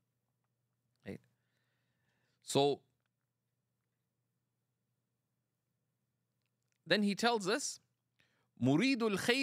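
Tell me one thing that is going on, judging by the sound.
A middle-aged man speaks calmly into a microphone, with pauses.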